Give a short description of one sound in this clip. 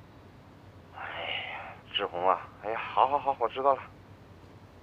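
A middle-aged man speaks calmly on a phone.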